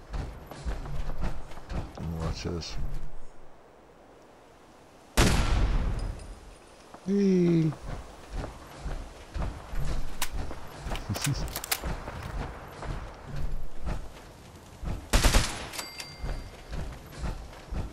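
Heavy metal footsteps clank steadily on pavement.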